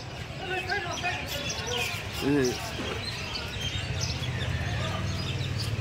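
A crowd of men and women talks and calls out nearby, outdoors.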